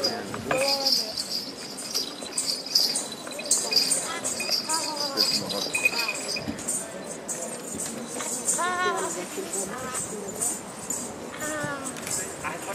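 Children and adults talk and call out nearby outdoors.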